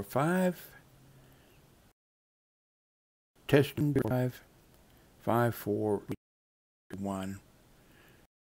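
A man speaks in short bursts through a microphone.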